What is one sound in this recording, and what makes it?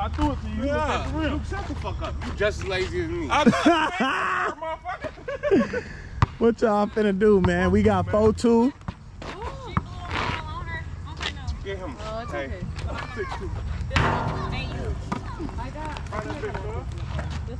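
A basketball bounces on pavement.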